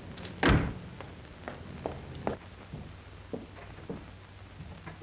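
A man's footsteps tap on pavement.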